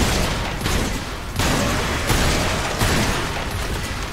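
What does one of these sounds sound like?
Explosions boom and debris crashes.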